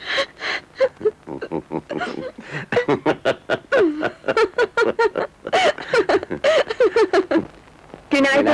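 An elderly man laughs heartily close by.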